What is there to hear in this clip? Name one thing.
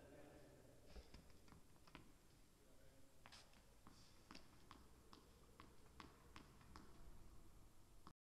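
A tennis ball bounces on the court with light thuds.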